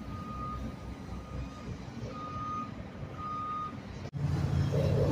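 A motorboat engine hums as the boat cruises past on the water.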